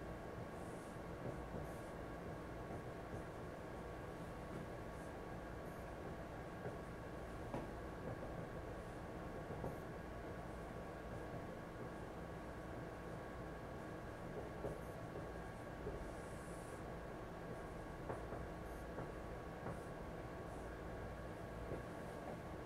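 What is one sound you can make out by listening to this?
A marker squeaks and taps against a whiteboard.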